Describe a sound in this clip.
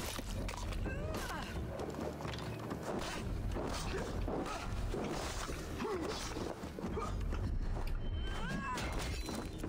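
Swords clash and strike in a fight.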